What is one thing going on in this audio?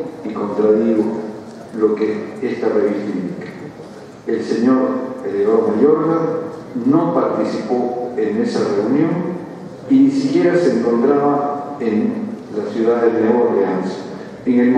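An elderly man speaks calmly and formally into a microphone.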